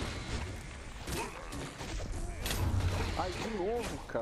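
Magic blasts crackle and boom in a video game.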